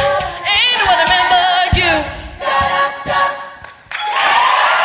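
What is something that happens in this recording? A group of young women sing together in harmony through a microphone.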